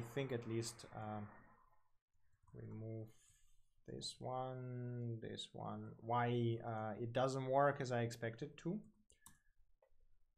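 A young man talks calmly and explains into a close microphone.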